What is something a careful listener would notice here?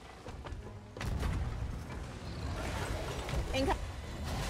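A cannon fires with a heavy boom.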